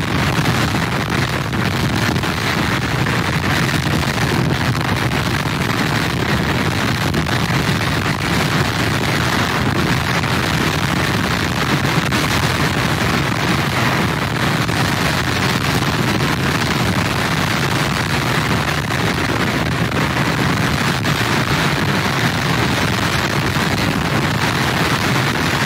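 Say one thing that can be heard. Heavy waves crash and roar against a pier.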